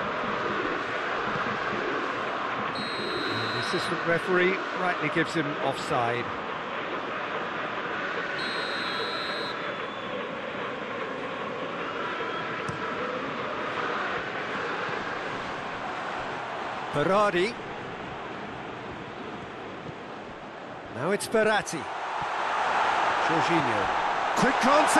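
A large stadium crowd roars and chants steadily, swelling louder toward the end.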